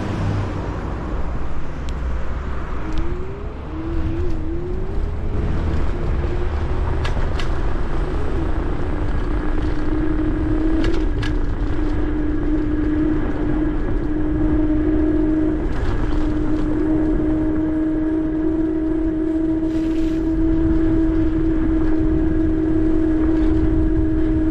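Wind rushes and buffets steadily outdoors.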